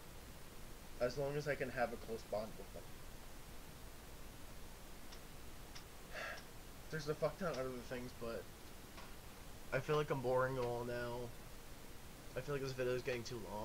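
A young man talks casually and close to a microphone, in short bursts with pauses.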